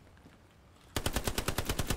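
A gun fires rapidly in a quick series of shots.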